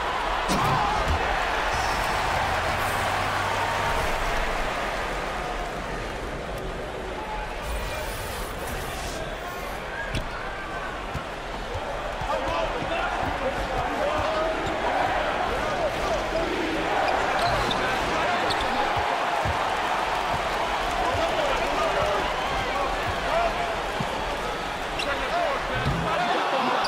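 A large crowd cheers steadily.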